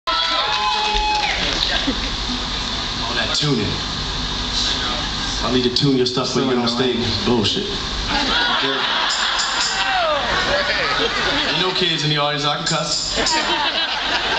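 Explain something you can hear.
A band plays acoustic music in a large hall.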